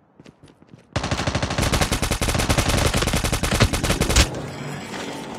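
An automatic rifle fires a long rapid burst.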